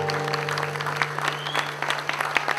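A guitar chord rings out and fades.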